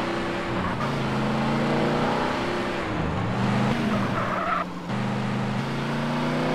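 A car engine hums steadily and shifts in pitch as the car drives.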